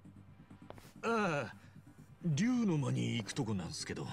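A man answers in a casual, slightly surprised voice.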